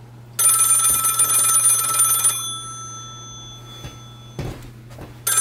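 A small object is set down on a shelf with a light knock.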